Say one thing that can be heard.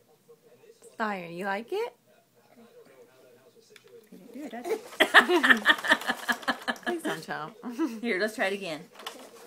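A baby squeals and babbles close by.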